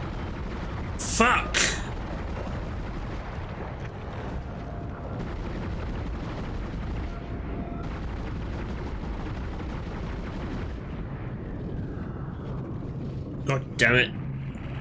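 A monster screeches loudly.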